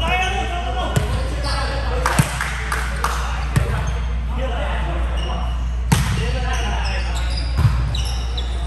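A volleyball is struck with sharp slaps in an echoing gym.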